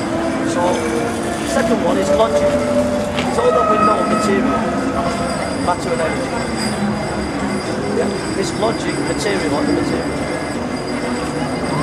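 A tram rolls slowly past.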